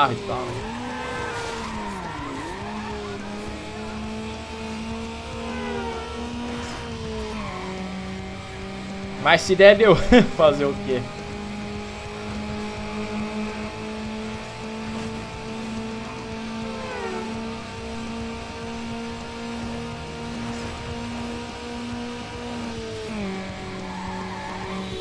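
A racing car engine roars steadily, dropping in pitch at each gear change.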